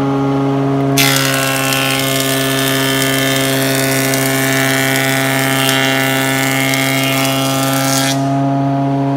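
A planer cuts through a wooden board with a loud, harsh whine.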